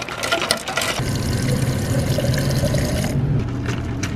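Water pours from a dispenser into a bottle.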